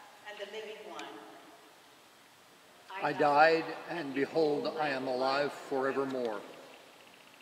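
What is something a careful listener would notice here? A young man sings from a distance in a large echoing hall.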